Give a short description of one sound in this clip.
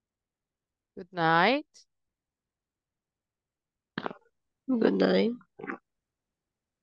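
A young woman speaks in short bursts over an online call.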